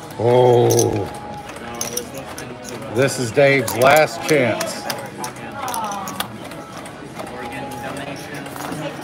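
Casino chips click together as they are handled.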